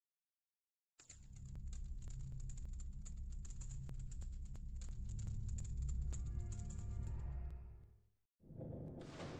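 Deep, rumbling video game music plays.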